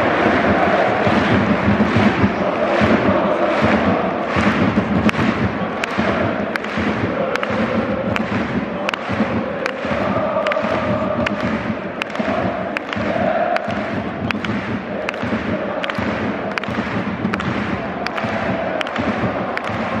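A large crowd claps in steady rhythm.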